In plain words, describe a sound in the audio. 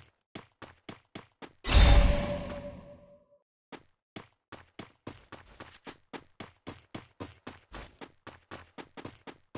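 Footsteps run quickly over dirt and gravel.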